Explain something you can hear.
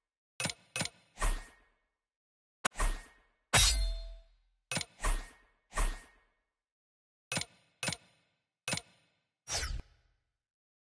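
Menu selection sounds click and chime in quick bursts.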